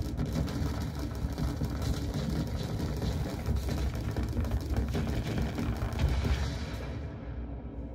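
Laser weapons zap and crackle in rapid bursts.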